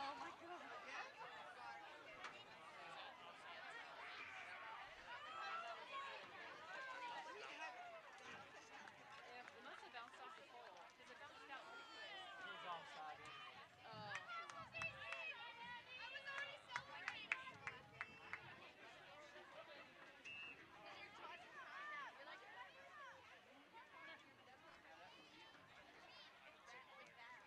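Young women call out to each other across a sports field.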